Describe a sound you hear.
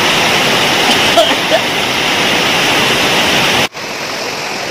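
Water rushes and splashes loudly.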